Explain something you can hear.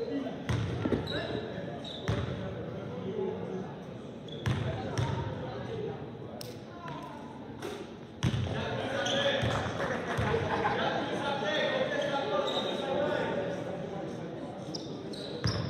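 Young players call out to each other across the gym.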